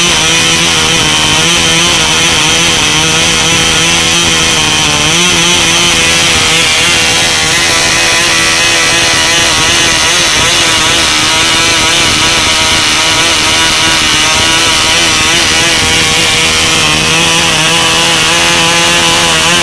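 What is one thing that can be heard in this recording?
A small model engine runs at high speed with a loud, buzzing whine that wavers slightly in pitch.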